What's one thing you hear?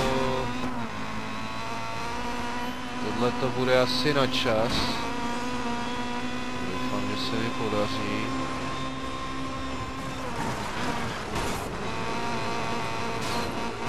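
A racing car engine whines loudly at high speed.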